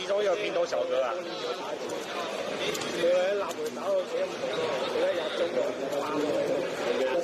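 A crowd of young people chatters nearby in a busy hall.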